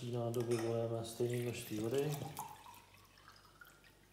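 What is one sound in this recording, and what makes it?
Water pours from a bottle into a metal pot.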